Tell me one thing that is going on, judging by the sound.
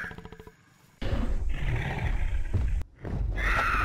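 A large dinosaur roars close by.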